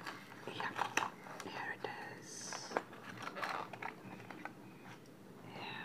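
Plastic packaging crinkles and tears as it is opened.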